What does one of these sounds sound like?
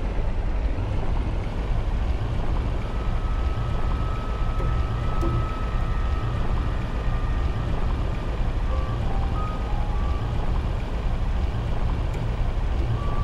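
Water rushes and bubbles as a swimmer propels through it underwater.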